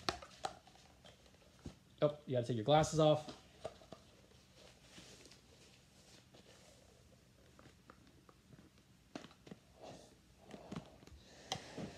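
A rubber mask strap snaps and rustles as it is pulled on.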